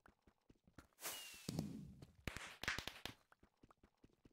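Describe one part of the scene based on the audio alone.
Fireworks burst with a loud bang and crackle.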